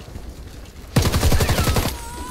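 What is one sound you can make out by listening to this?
Rapid gunshots fire in a quick burst.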